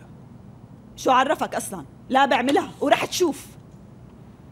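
A woman speaks urgently nearby.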